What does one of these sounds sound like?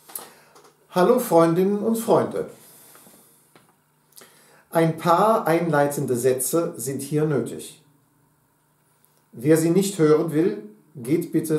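A middle-aged man sings loudly and clearly close by, in phrases with pauses between them.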